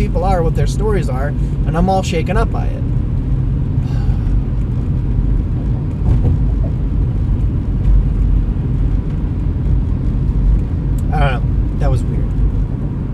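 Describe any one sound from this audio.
A man speaks close by in short bursts.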